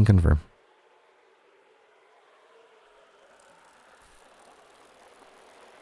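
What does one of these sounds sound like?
A bicycle rolls along a dirt path.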